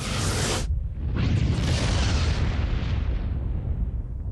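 A ship's engines whoosh and roar as it powers up.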